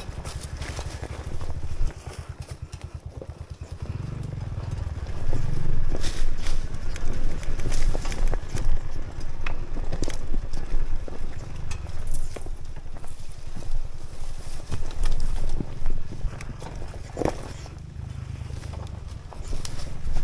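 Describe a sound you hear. A dirt bike engine revs and putters close by, rising and falling.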